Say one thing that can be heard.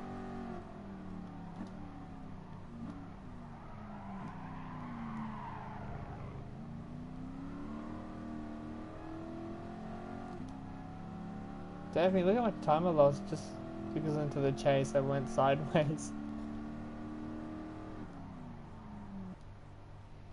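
A car engine roars and rises and falls in pitch as the gears change.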